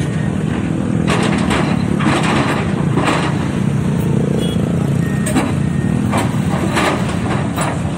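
Metal clanks and knocks as an excavator works.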